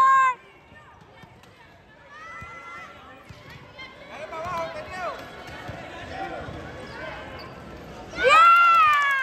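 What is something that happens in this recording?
A basketball bounces on a wooden floor.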